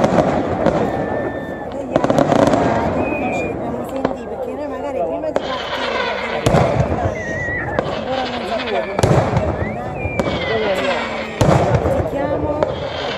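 Daytime fireworks crackle and bang far off across a valley, echoing off the hills.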